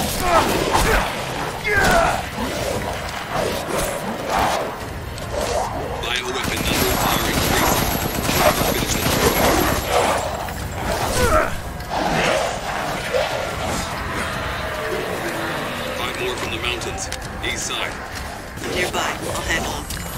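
A young man talks with animation, close to a headset microphone.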